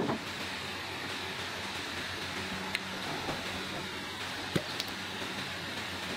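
A plastic cap clicks as it is twisted off a small bottle.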